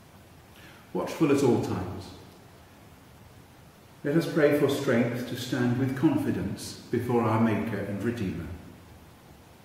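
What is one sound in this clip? An elderly man speaks calmly and clearly into a microphone in a quiet echoing room.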